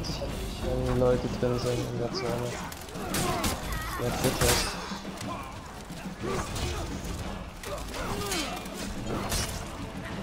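Steel blades clash and ring in a chaotic battle.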